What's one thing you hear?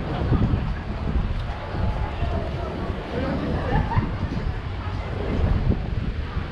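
Wind blows outdoors, rumbling steadily.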